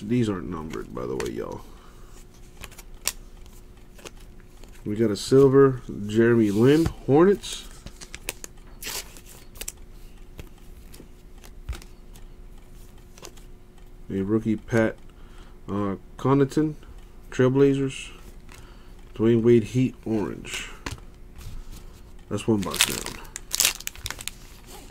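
Trading cards slide and click softly as they are flipped by hand.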